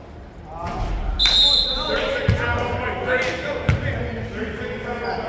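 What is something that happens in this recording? Sneakers squeak on the court as players run.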